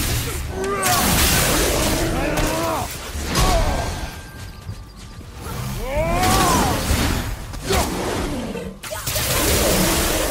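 Electric blasts crackle and fizz.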